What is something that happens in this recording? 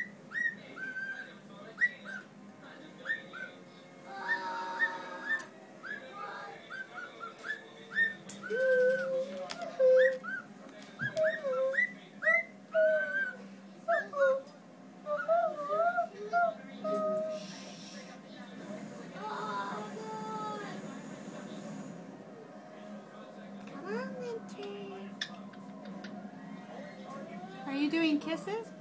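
A small bird chirps and whistles in quick bursts close by.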